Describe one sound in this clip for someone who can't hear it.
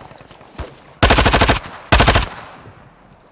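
Gunfire rattles in two short, loud bursts.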